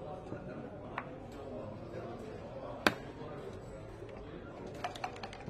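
Game checkers clack sharply on a wooden board.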